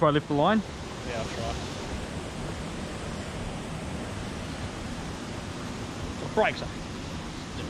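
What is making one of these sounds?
A young man speaks and exclaims close by, outdoors.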